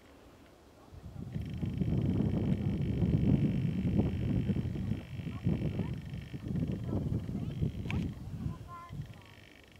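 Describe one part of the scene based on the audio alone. Wind gusts roar outdoors and rustle pine branches.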